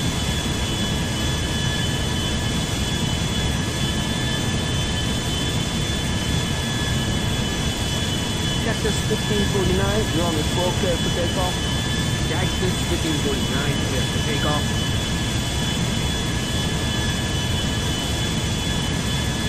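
A jet engine roars steadily as an airliner taxis.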